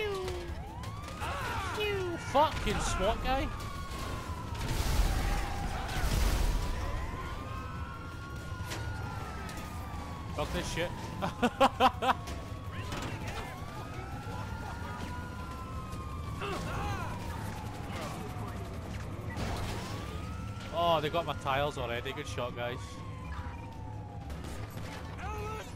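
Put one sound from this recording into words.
A police siren wails, rising and falling over and over.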